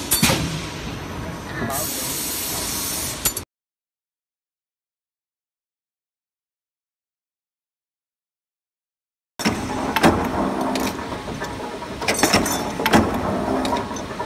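A stamping press thumps and clanks rhythmically.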